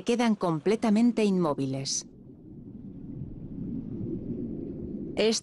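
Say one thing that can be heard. An orca swims with a low underwater rush of water.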